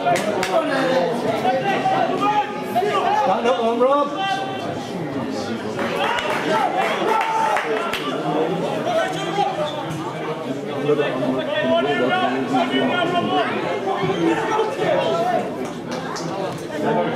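Men in a crowd nearby talk and call out loudly.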